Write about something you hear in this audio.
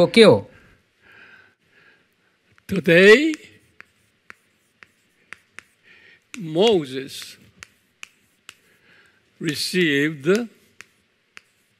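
Chalk scratches and taps on a blackboard.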